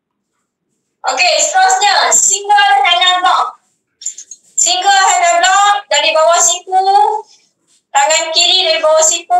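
A young woman speaks steadily over an online call.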